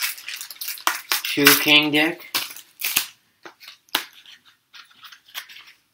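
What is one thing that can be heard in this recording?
Foil card packs crinkle as a hand handles them.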